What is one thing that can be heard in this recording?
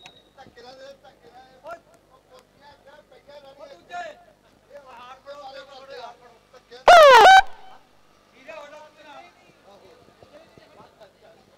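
A crowd of men chatters and calls out outdoors.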